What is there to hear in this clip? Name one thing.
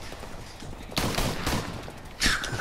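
A rifle fires a rapid burst of loud shots.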